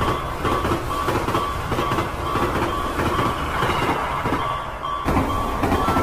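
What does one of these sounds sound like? A freight train clatters past over the rails.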